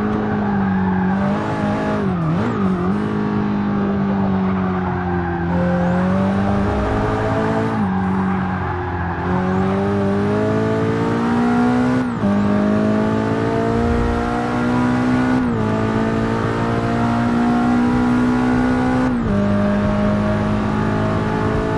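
A sports car engine roars steadily, rising in pitch as it speeds up and dropping sharply at each gear change.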